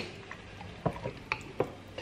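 A spoon scrapes inside a glass jar.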